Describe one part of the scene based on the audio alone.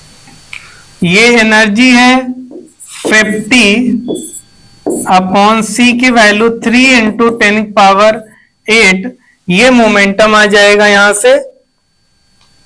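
A man lectures clearly into a close microphone.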